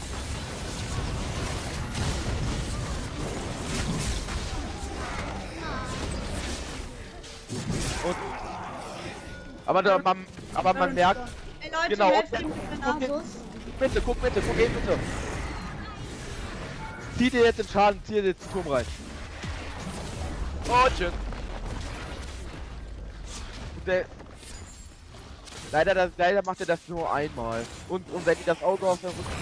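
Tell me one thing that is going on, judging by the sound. Fantasy game combat effects clash, zap and whoosh.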